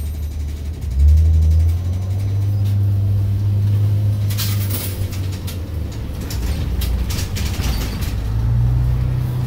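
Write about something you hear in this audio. A bus's engine changes pitch and grows louder as it speeds up.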